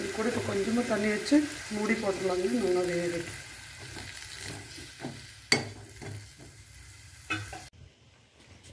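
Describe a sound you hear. A metal spoon scrapes and clinks against a pan while stirring vegetables.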